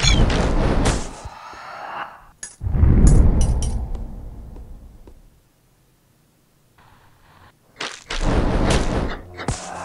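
Sword slashes and hits clang in quick bursts.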